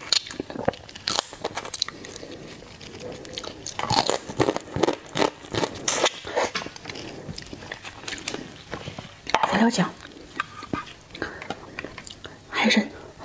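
A woman chews and slurps food loudly, close to a microphone.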